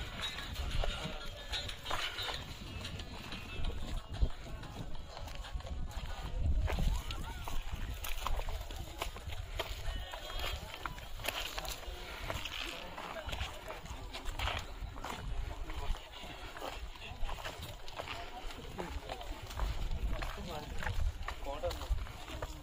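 Sandals scuff and crunch on rocky ground.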